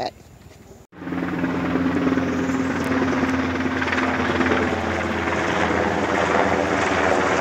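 A helicopter drones overhead with a steady rotor hum.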